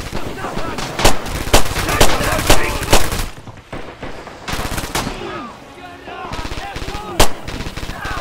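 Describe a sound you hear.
A pistol fires loud single shots.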